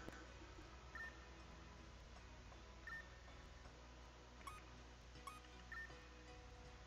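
Short electronic menu beeps chime now and then.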